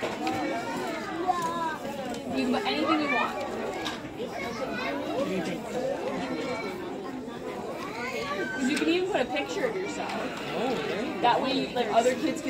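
Young children chatter and call out.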